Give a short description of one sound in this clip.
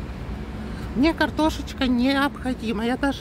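A young woman speaks with animation close to the microphone.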